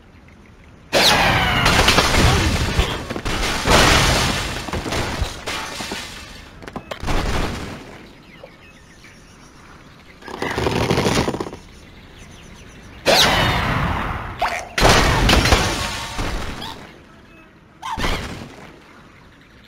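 Cartoon game sounds of structures crashing and breaking come in loud bursts.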